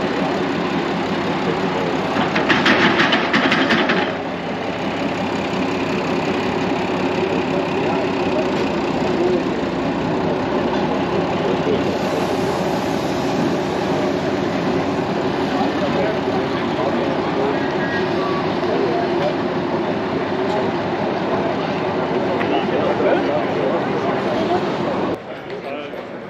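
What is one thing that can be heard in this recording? A diesel railcar engine rumbles steadily as the railcar rolls slowly past.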